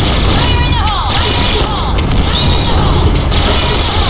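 Video-game submachine guns fire in rapid bursts.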